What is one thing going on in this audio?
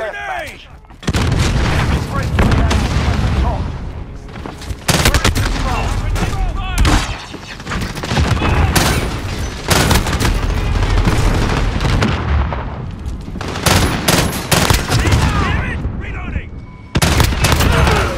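Rapid gunfire cracks in bursts, close by.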